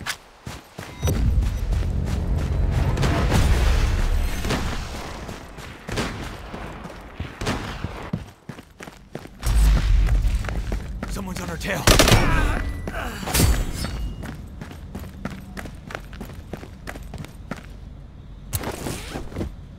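Footsteps crunch and thud steadily.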